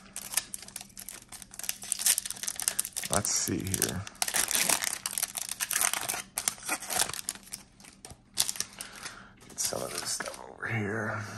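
A foil wrapper crinkles and tears as it is opened by hand.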